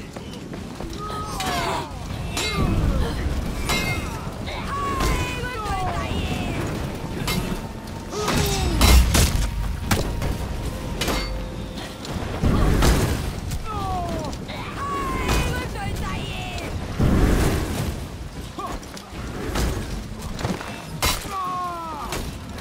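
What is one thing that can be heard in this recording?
Metal weapons clash and strike repeatedly.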